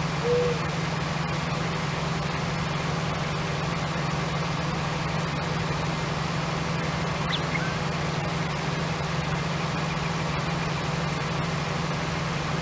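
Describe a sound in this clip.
A harvester engine drones steadily at low pitch.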